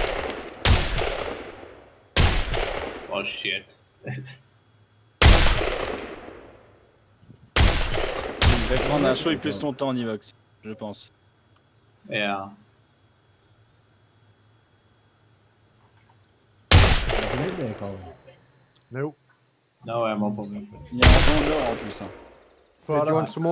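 Rifle shots crack loudly, one at a time, each followed by a long fading echo.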